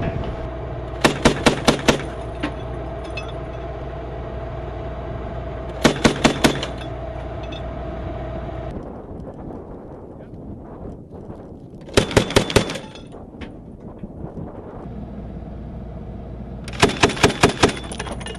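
An automatic grenade launcher fires in short bursts of heavy thumping shots.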